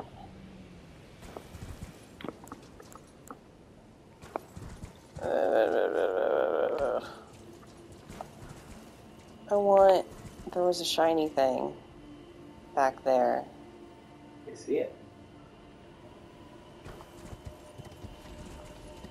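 A horse's hooves thud on grass at a trot.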